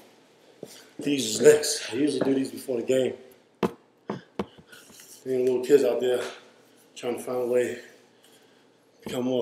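A man speaks close by, calmly.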